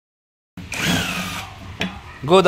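An impact wrench whirs briefly.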